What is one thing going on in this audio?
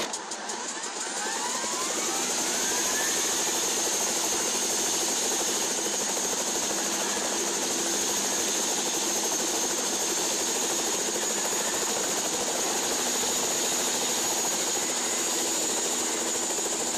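A helicopter engine whirs and its rotor thrums steadily.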